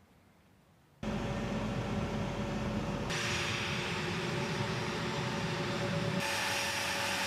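A jet engine whines steadily close by.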